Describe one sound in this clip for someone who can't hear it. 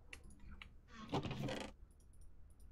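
A wooden chest lid creaks open.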